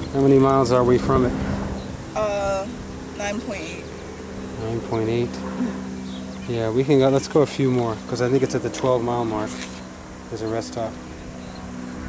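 A teenage girl talks close by.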